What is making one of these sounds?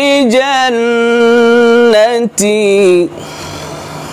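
A man chants in a long, drawn-out, melodic voice close by, then stops abruptly.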